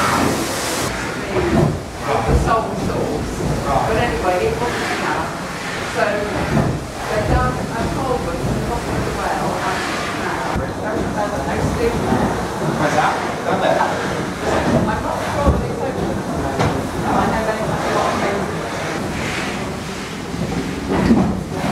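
A man explains calmly and at length, close by, in an echoing room.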